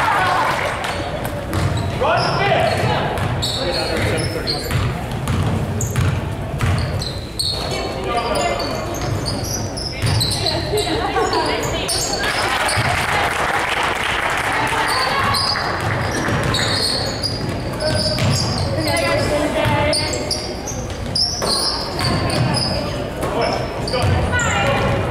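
Spectators in the stands cheer and call out.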